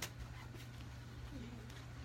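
Bare feet pad softly on a hard floor.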